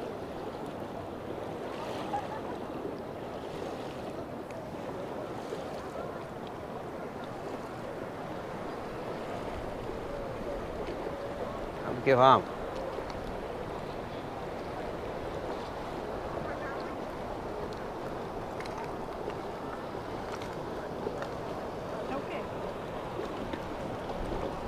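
A crowd of people chatters in the distance outdoors.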